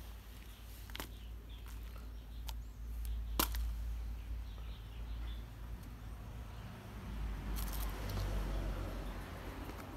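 Soil patters into a small plastic pot.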